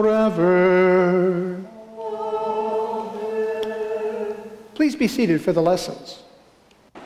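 A man sings a chant in a large echoing hall.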